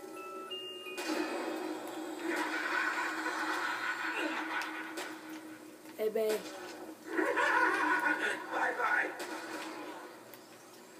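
Explosions from a video game boom through a television speaker.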